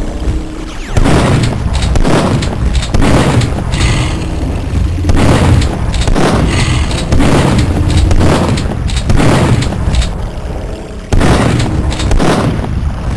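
A shotgun fires loud, booming blasts every two seconds, each echoing briefly.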